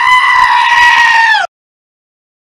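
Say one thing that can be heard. A goat bleats loudly in a long, harsh cry.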